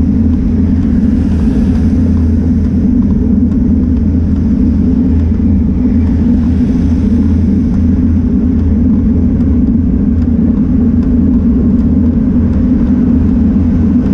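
Cars pass by on the road.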